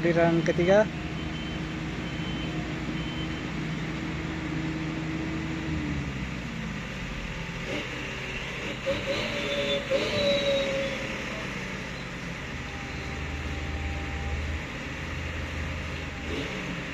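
A truck engine rumbles steadily as the truck drives slowly over a rough dirt road.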